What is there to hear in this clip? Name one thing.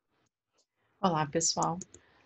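A woman speaks close to a microphone, heard through an online call.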